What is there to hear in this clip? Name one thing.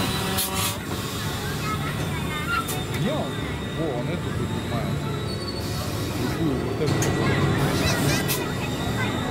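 A fairground ride hums and whirs steadily as it spins.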